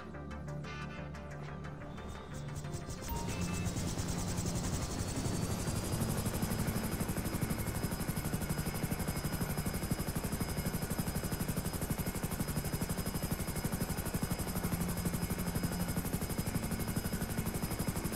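Helicopter rotor blades thump rapidly and loudly.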